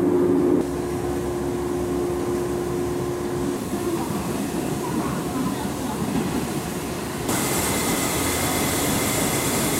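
A steam locomotive chuffs slowly past.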